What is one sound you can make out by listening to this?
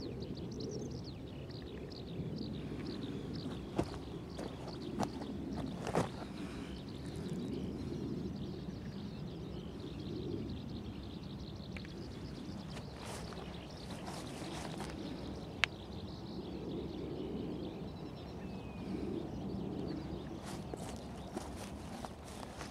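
Wind blows and rumbles steadily outdoors.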